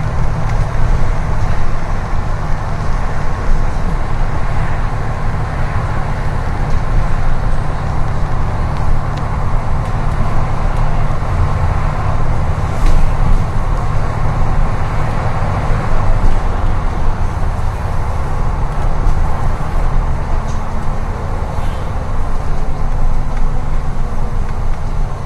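A bus engine rumbles steadily from inside the bus as it drives along.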